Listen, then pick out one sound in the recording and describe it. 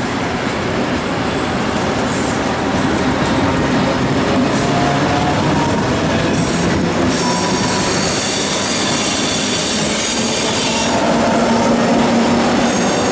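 An electric locomotive rumbles past close by.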